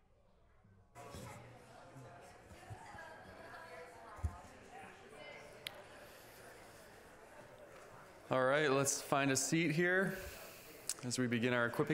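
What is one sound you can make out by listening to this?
A man speaks through a microphone over loudspeakers in a large echoing hall.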